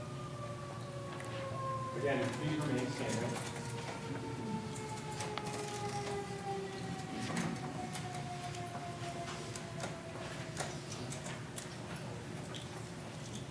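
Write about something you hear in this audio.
A woman speaks quietly through a microphone in a large echoing hall.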